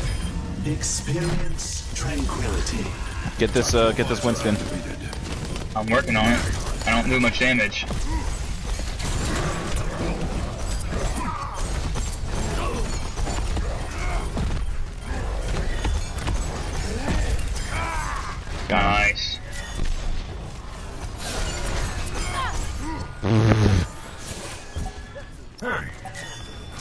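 Video game weapons fire and explode in quick bursts.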